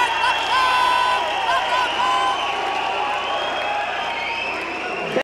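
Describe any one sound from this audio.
A young woman sings loudly.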